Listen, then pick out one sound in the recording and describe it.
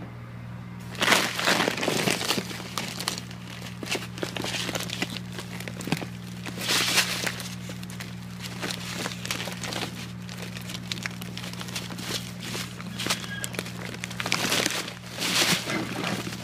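Plastic sacks rustle and crinkle as a hand rummages through them.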